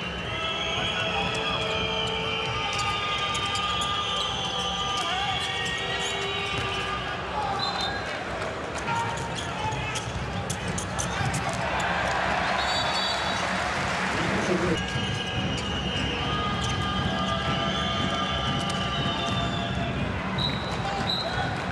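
A ball thuds as it bounces on a hard court.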